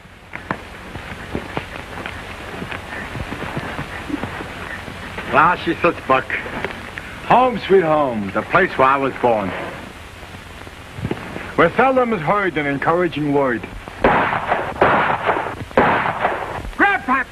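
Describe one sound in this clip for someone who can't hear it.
Horses' hooves clop on a dirt trail.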